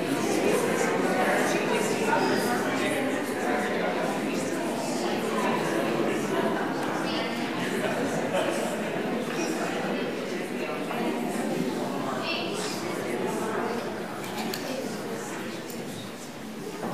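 A crowd of men and women chat and greet each other all at once in a large echoing hall.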